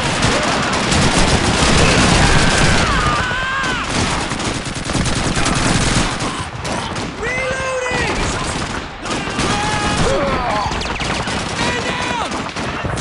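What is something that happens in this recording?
Explosions rumble in the distance.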